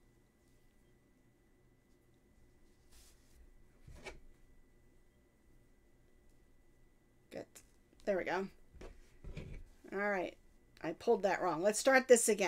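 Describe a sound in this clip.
Yarn softly rustles as it is pulled through a crocheted piece.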